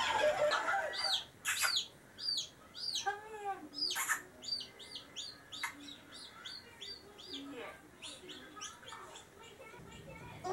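A handheld game beeps and chirps in short bursts.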